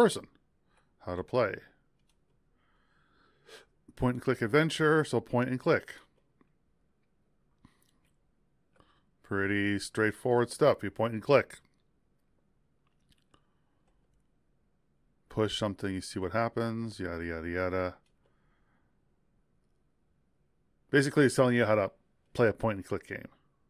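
A man talks calmly into a close microphone in short bursts, with pauses between them.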